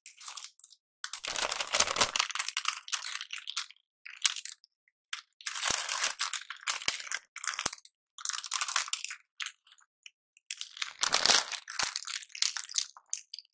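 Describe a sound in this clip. Thin plastic wrapping crackles close to a microphone.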